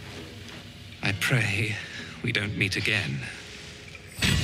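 A man speaks calmly and deeply, close by.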